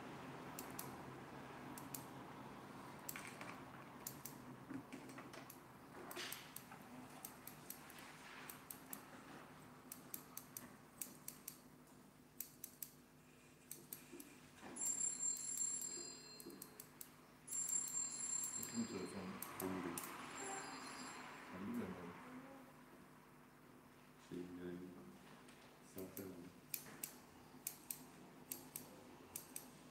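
Scissors snip hair in quick, crisp cuts.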